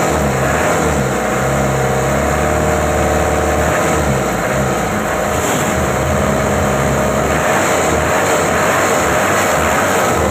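A diesel engine runs loudly with a steady throbbing rumble.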